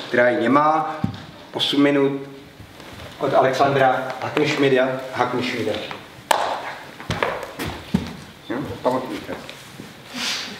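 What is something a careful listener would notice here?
A man speaks with animation in a large echoing hall.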